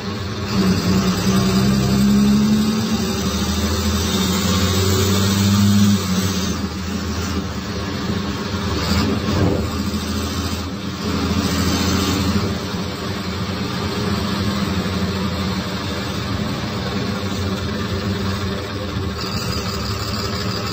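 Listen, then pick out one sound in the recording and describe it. A six-cylinder diesel city bus engine rumbles and rises under load, heard from inside the bus.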